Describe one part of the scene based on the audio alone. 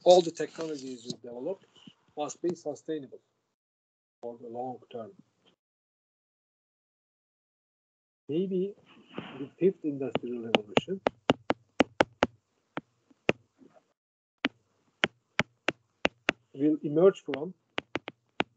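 An elderly man lectures calmly over an online call, with pauses.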